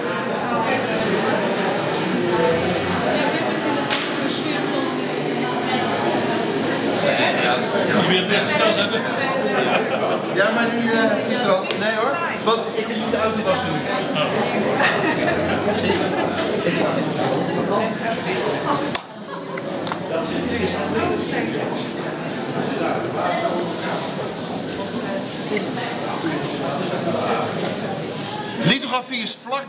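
Several men and women chat nearby in a busy room.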